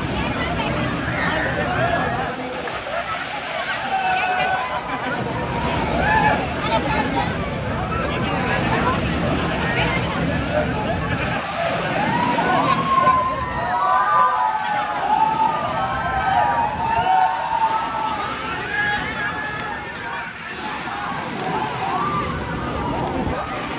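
Waves surge and splash through a pool.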